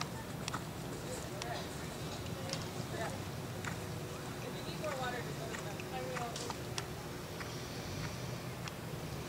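A horse canters on sand footing, its hooves thudding softly.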